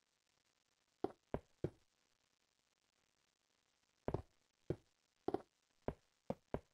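Short, dull thuds of blocks being placed come in quick bursts.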